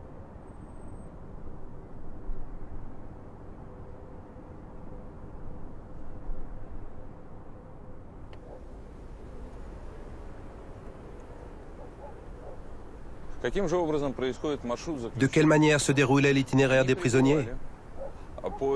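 Wind blows across open snowy ground.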